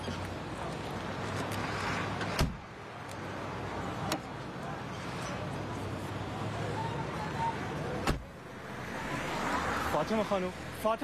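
Traffic rumbles along a road outdoors.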